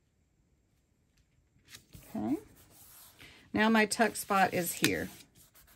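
Paper rustles softly as hands press and smooth it.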